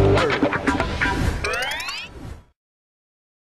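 A bright game jingle chimes with rising notes.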